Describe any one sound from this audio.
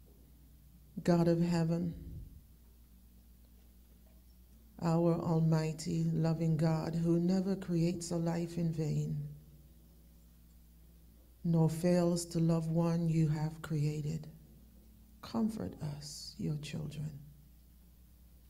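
A woman speaks slowly and solemnly into a microphone, heard through an online call, with long pauses.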